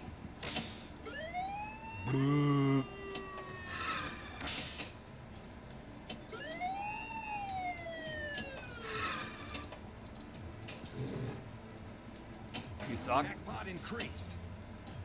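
Electronic pinball sound effects chime and sweep up and down.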